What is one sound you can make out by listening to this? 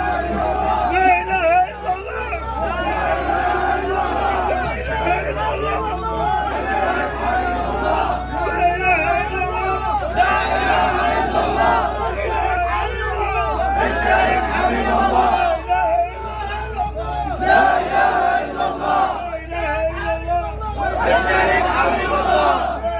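A large crowd of men shout and chant loudly together outdoors.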